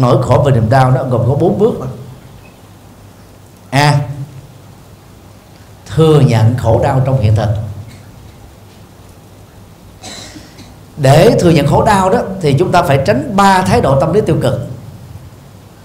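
A middle-aged man speaks warmly into a microphone, pausing between phrases.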